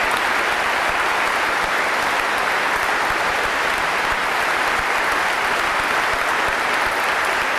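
A crowd applauds steadily in a large echoing space.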